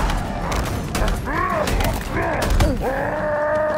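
Gunfire bursts and explosions boom nearby.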